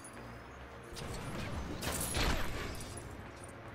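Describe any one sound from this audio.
Small objects burst apart with a crackling crash.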